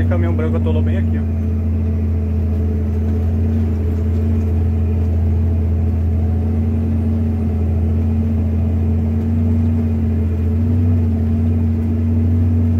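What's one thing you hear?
Tyres rumble over a rutted dirt road.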